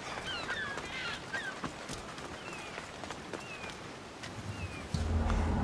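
Footsteps run quickly over stone paving.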